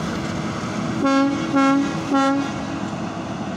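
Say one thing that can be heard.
A locomotive horn sounds in short blasts.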